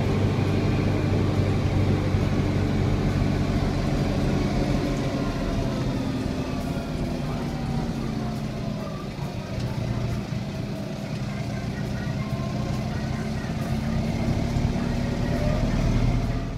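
A tractor engine rumbles steadily from inside the cab, dipping slightly and then rising again.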